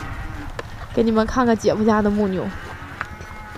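A cow moos loudly nearby.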